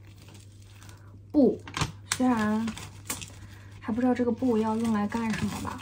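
Paper rustles and crinkles in hands.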